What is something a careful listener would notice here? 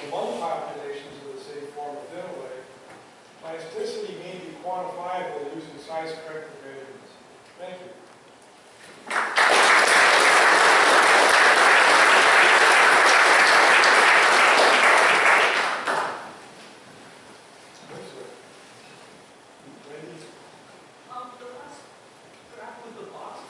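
A man speaks calmly through a microphone and loudspeakers in a large echoing hall.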